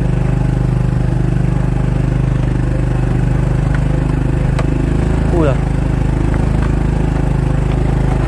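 A motorbike engine hums steadily as it rides along a rough dirt track.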